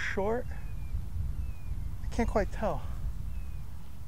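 A golf club strikes a ball.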